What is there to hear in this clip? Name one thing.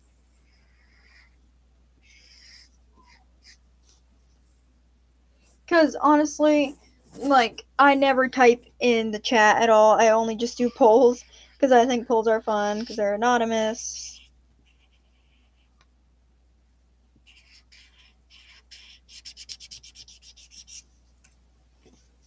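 A marker squeaks and scratches softly across paper.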